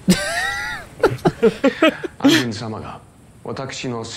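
Young men laugh together into close microphones.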